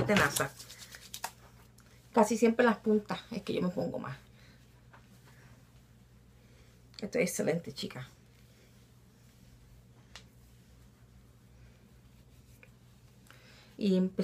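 A woman talks calmly and close by, in short bursts.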